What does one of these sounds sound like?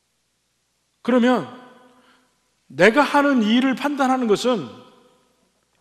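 A middle-aged man speaks slowly and clearly through a microphone in a large echoing hall.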